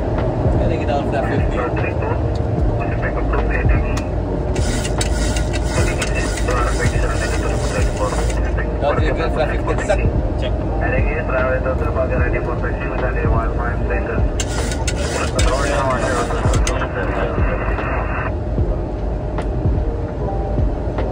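Aircraft engines rumble steadily.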